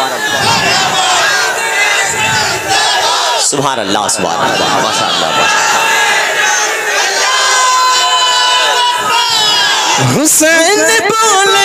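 A man sings a chant loudly through a microphone and loudspeakers, in a large echoing space.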